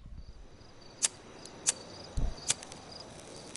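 A lighter clicks and sparks a few times.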